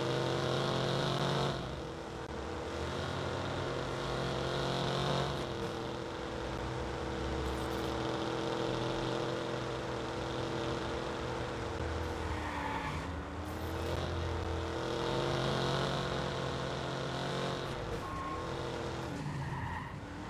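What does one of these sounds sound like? A car engine hums steadily, rising and falling in pitch as the car speeds up and changes gear.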